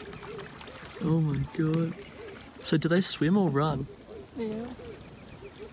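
A hippo grunts and honks loudly across the water, in several deep bursts.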